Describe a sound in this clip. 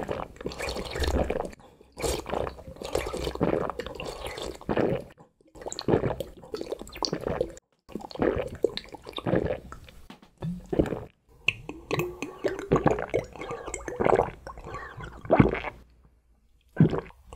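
A man slurps and gulps a drink up close.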